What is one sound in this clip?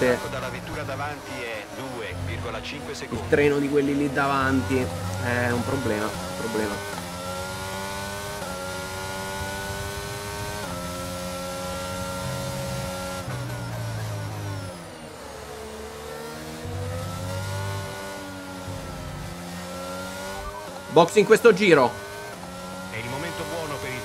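A racing car engine screams, rising in pitch through the gears and dropping as it slows for corners.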